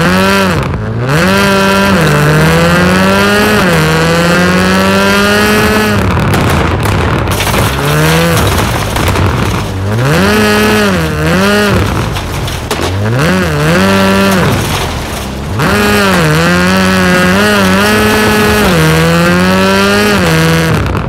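A rally car engine revs hard, rising and falling as it shifts gears.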